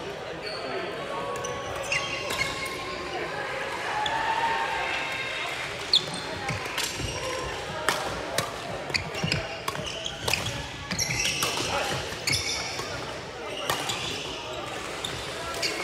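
Young men call out to each other now and then in a large echoing hall.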